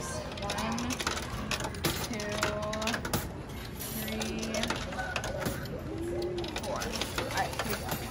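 Arcade machines chime and beep in a noisy hall.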